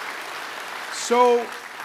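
A man begins speaking into a microphone.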